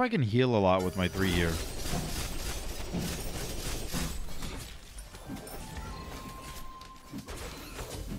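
Game sound effects of magic blasts and clashes play throughout.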